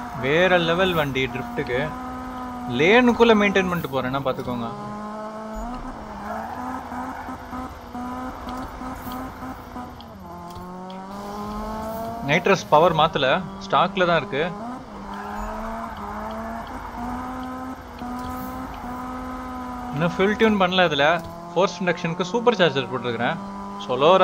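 A car engine revs up and down sharply in quick bursts.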